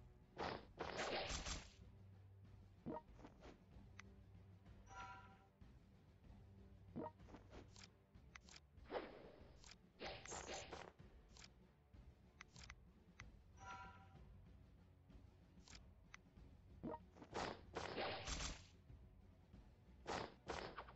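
Game interface sounds click and chime as menus open and close.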